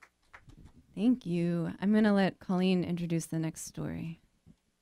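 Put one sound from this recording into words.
A young woman sings in a clear voice through a microphone.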